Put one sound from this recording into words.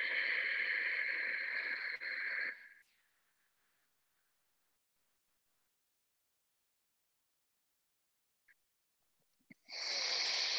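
A man exhales and inhales forcefully through his nose, heard through an online call microphone.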